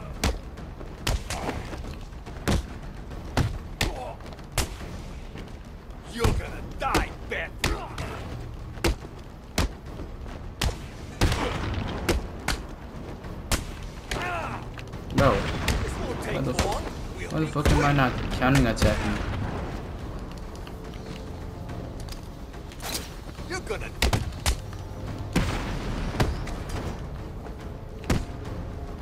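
Punches and kicks land with heavy thuds again and again.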